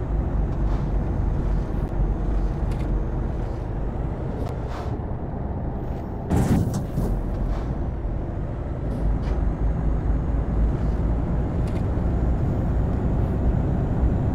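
A truck engine hums steadily while driving along a road.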